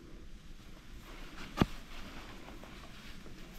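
A dog shifts in a rustling hammock.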